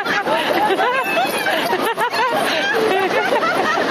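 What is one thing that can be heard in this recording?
A young woman shouts and laughs excitedly close by.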